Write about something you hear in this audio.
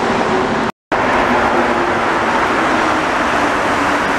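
A rubber-tyred metro train rolls into an echoing underground station.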